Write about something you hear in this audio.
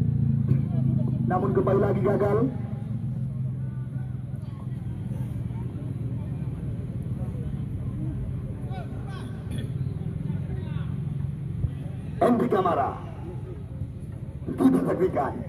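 A crowd of spectators chatters and shouts at a distance outdoors.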